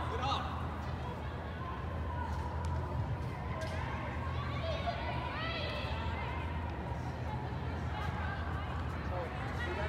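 Young women shout to each other, far off in a large echoing hall.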